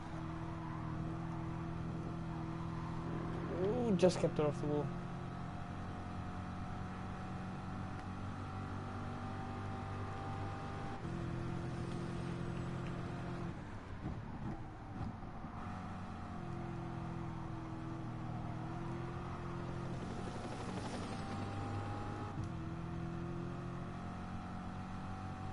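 A race car engine roars steadily, rising and falling in pitch as it shifts gears.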